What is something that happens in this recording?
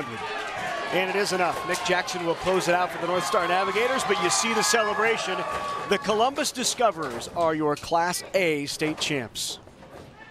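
A group of young men cheer and shout excitedly.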